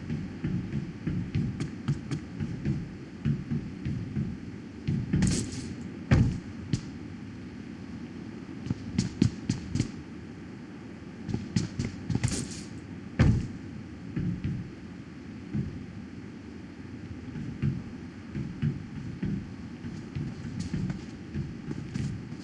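Footsteps clang on a metal roof.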